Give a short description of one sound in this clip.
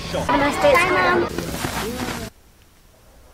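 A young girl speaks with animation, heard through a playback.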